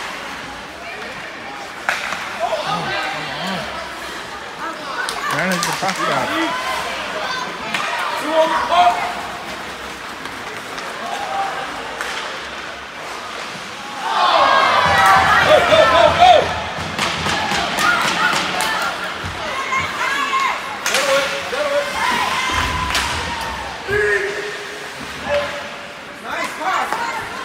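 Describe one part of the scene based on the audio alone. A crowd of spectators murmurs and calls out in a large echoing rink.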